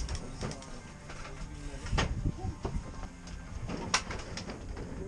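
Bike tyres roll over a hollow wooden ramp with a knock.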